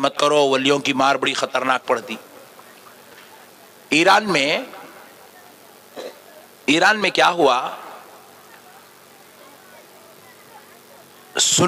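A man speaks with fervour through a microphone and loudspeakers, in bursts with pauses.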